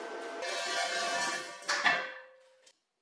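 A steel frame scrapes and clanks across a concrete floor.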